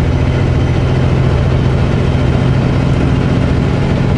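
A truck rushes past close by.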